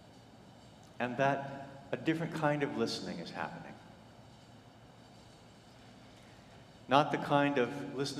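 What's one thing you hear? A man speaks calmly through a microphone in a large echoing hall, with pauses.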